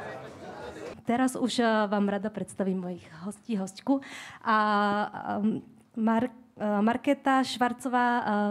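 A young woman speaks calmly into a microphone over loudspeakers in a large room.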